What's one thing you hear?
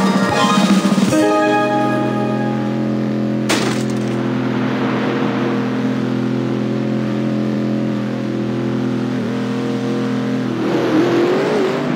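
A small kart engine idles with a steady hum.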